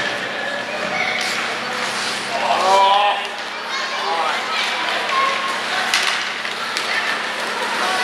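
Ice skates scrape and carve across the ice in an echoing arena.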